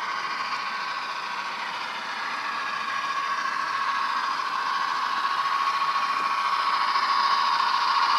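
A model train motor hums steadily and grows louder as the locomotive comes closer.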